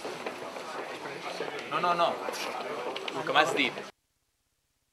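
Several men talk at once close by.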